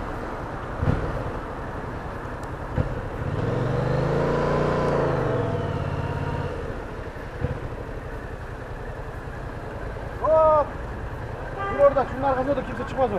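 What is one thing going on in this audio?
A motorcycle engine hums and revs up and down while riding.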